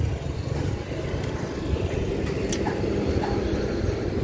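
A small van drives by with a low engine hum.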